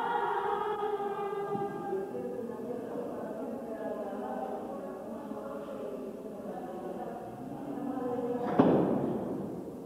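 A brass band plays a lively tune in a large echoing hall.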